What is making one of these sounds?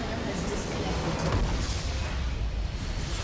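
A structure explodes with a loud boom.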